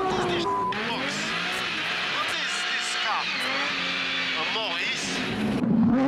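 A man speaks inside a car.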